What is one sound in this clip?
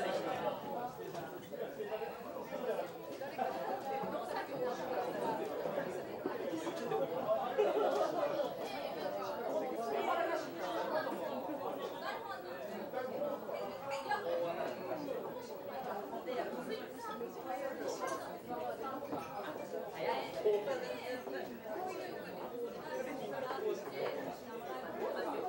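Cutlery and dishes clink now and then.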